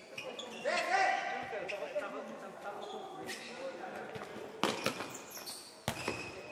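A ball is kicked on a hard floor in an echoing hall.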